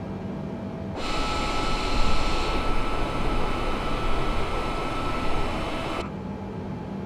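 A jet airliner roars loudly as it flies past outside.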